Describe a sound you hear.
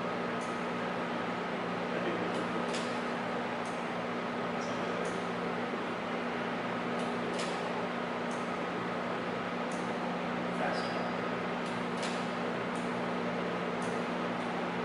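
A man handles a metal fitting, making small clicks and taps.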